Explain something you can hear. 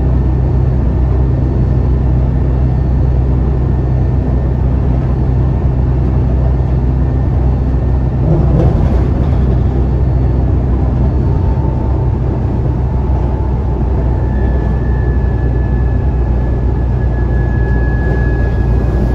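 A bus engine hums and rumbles steadily from inside the cabin.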